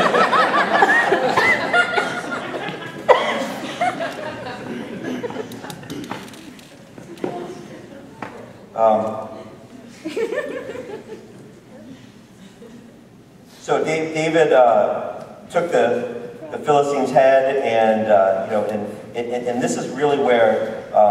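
A man speaks calmly, heard through a microphone in an echoing hall.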